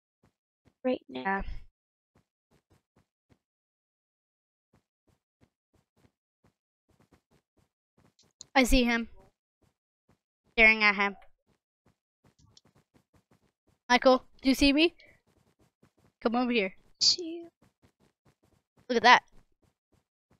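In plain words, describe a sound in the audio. A boy talks with animation into a microphone, in short bursts.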